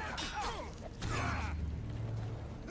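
Electricity crackles in a sharp burst.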